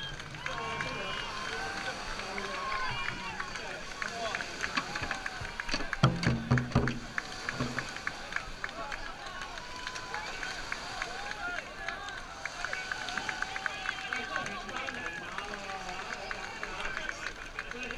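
A crowd of people shouts and chatters outdoors.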